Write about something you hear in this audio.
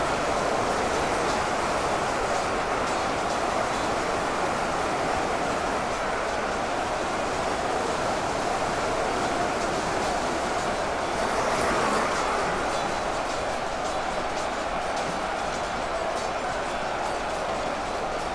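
A vast battle din roars steadily, thick with clashing weapons.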